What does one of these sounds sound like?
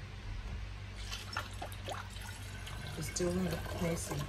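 Liquid pours and gurgles into a glass bottle.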